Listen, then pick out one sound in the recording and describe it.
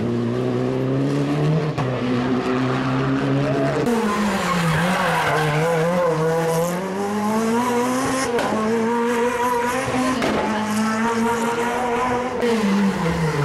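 A rally car engine roars loudly, revving up and down as it shifts gears.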